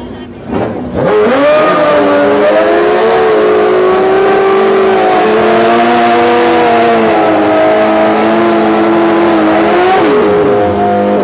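Tyres screech and hiss while spinning on the road.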